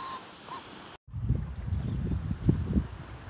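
A stream rushes and gurgles close by.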